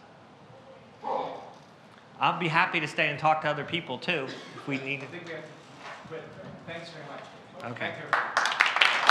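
A man speaks to a small audience.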